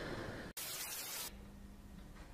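Static hisses briefly.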